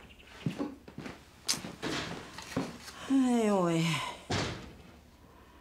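An older woman speaks quietly nearby.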